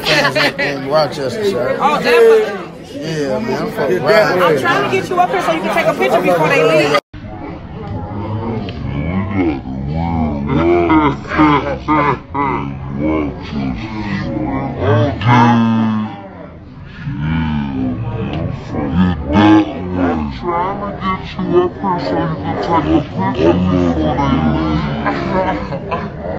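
A young woman talks and laughs close by with animation.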